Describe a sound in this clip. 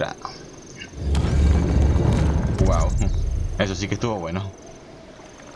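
A heavy stone door grinds open with a deep rumble.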